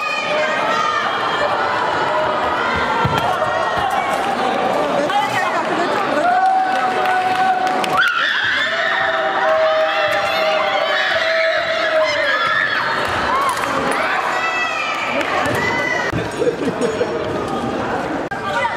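Young women cheer and shout excitedly nearby.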